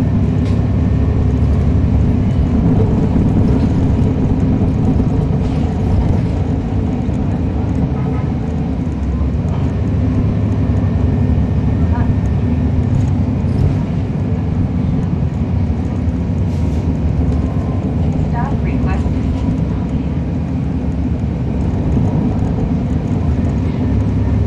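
A diesel transit bus engine rumbles, heard from on board.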